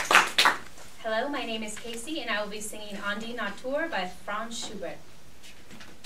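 A young woman speaks calmly in a room.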